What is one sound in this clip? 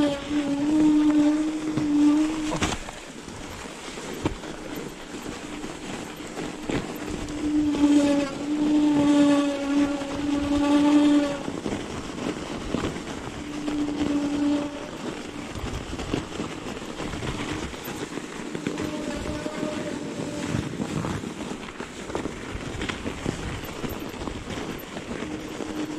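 Bicycle tyres crunch and hiss through deep snow.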